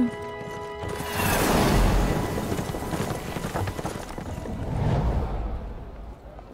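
A magical blast rushes past with a loud whoosh.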